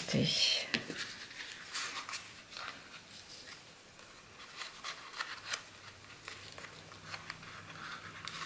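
Ribbon crinkles as fingers tie it.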